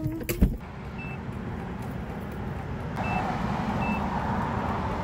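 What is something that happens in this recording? A cash machine beeps a few times in short high tones.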